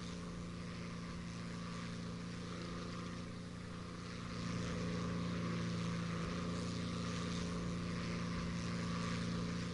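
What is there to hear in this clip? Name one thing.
A propeller plane's engine drones steadily, growing louder partway through.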